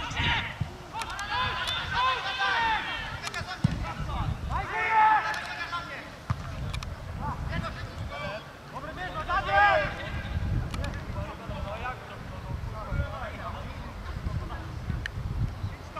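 Young men shout and call to each other outdoors during a football match.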